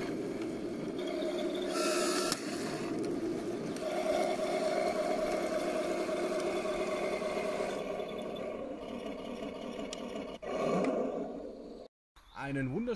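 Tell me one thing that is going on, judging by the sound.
A toy tank's electric motor whines as it drives over grass.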